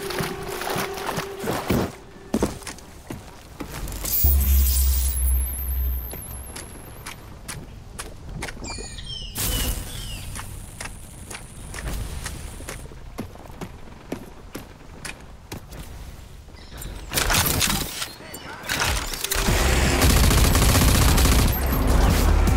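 Footsteps crunch over dirt and gravel.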